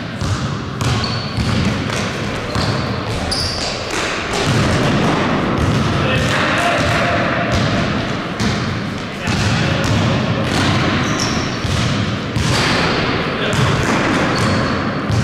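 Sneakers squeak on a hard floor in an echoing hall.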